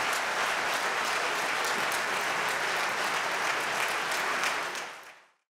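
A large crowd applauds loudly in a big hall, then the clapping fades away.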